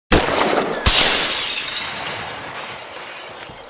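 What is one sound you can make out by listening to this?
A hollow ball bursts with a loud crash.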